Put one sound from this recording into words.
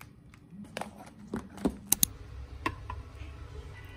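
A can's ring-pull lid pops and tears open.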